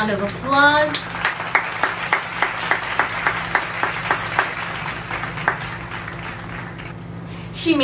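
A young woman claps her hands steadily.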